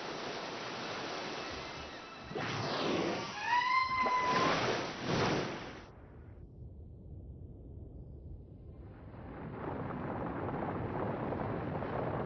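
Waves wash and churn on open water.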